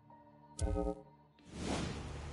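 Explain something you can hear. A menu chimes with a short electronic tone.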